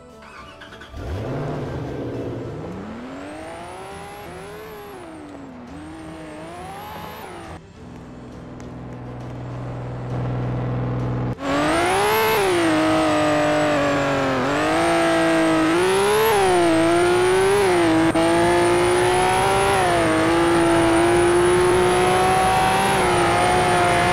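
A car engine revs and roars as it accelerates through the gears.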